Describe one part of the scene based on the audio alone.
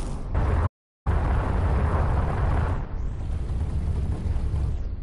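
A spaceship engine roars with a deep, steady rumble.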